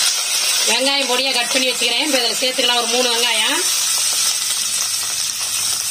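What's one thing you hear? Chopped onions drop into a sizzling pan.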